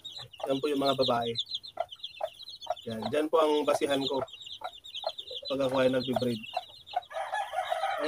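Chicks peep rapidly and continuously, high and shrill.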